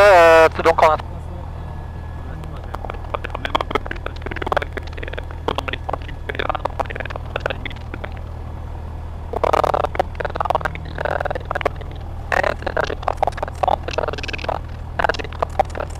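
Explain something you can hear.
A young man reads out through a headset intercom.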